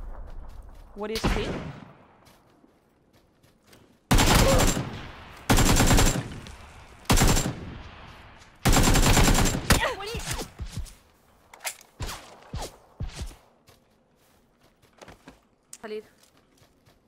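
A young woman speaks through a headset microphone.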